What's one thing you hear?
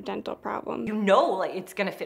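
A middle-aged woman speaks clearly and close.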